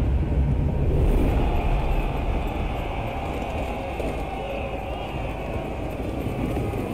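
A crowd of people runs through snow.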